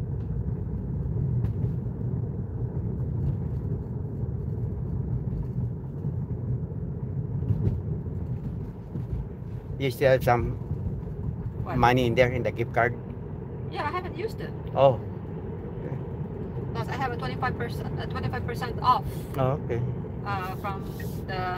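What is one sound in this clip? A car hums steadily as it drives along a road.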